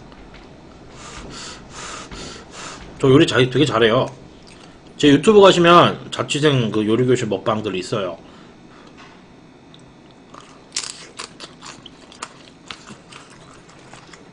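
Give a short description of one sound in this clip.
A young man chews food with wet smacking sounds.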